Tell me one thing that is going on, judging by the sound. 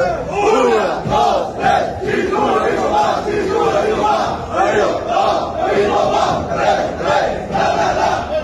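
A crowd of fans sings and chants loudly in rhythm.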